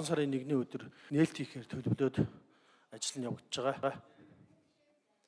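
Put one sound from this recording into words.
A middle-aged man speaks into a microphone with animation.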